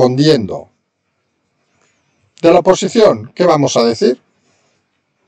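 A middle-aged man speaks calmly into a microphone, in short phrases.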